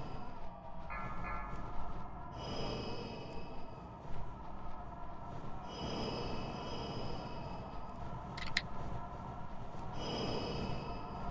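Game spell effects whoosh and crackle with fire and lightning.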